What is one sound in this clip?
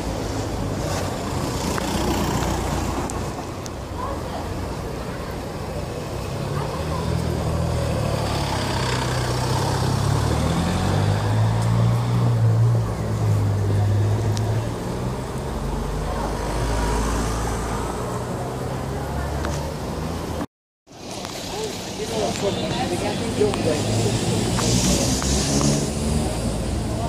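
Traffic murmurs along a busy street outdoors.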